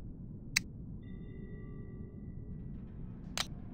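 A soft electronic chime rings.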